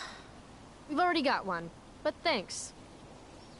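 A young woman replies briefly and politely.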